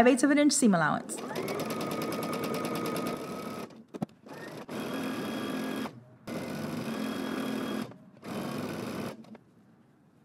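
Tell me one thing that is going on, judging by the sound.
A sewing machine whirs steadily as it stitches, stopping and starting.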